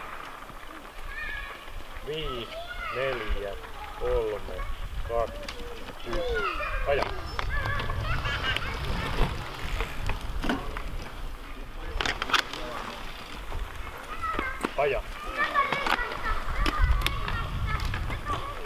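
Bicycle tyres crunch slowly over gravel.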